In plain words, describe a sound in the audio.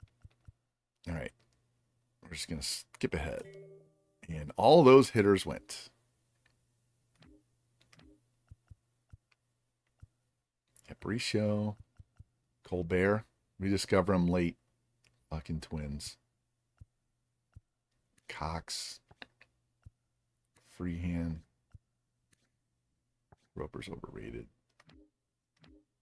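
A man talks calmly and closely into a microphone, in short bursts.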